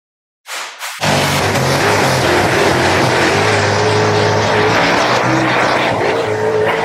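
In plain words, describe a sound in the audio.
A race car engine roars at high revs.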